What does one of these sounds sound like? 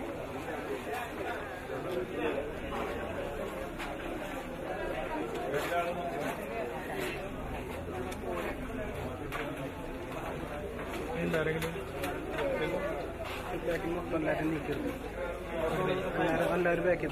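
A crowd of men and women sings slowly together nearby.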